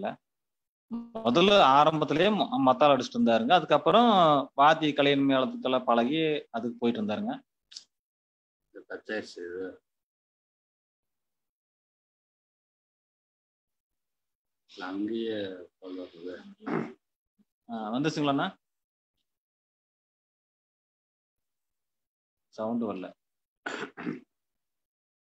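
A man speaks with animation over an online call, in bursts with pauses.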